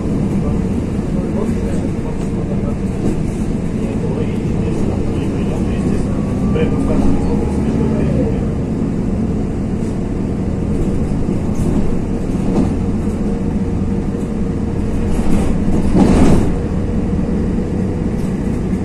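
A vehicle rumbles steadily while driving along a street.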